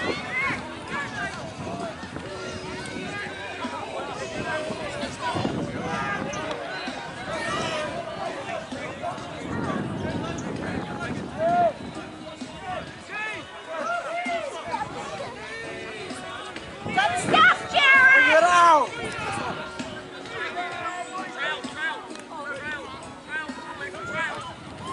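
Spectators talk and shout nearby outdoors.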